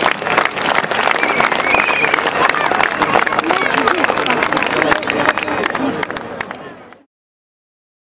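Men and women in a crowd shout and chant close by.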